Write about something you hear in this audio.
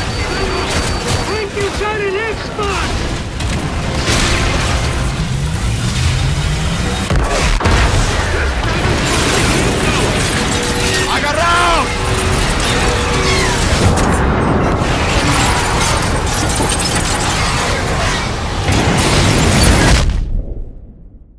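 A deep rumbling roar fills an echoing tunnel.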